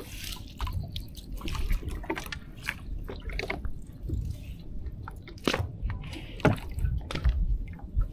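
Water splashes and drips as a fishing net is hauled out of a river.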